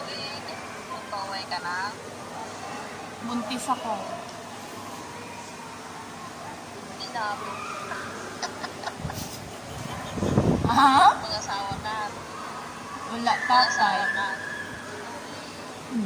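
An older woman speaks through an online call.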